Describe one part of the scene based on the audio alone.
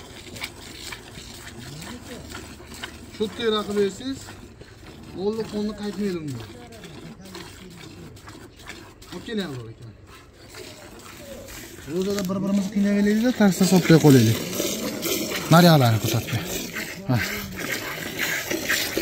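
Milk squirts in streams into a pail.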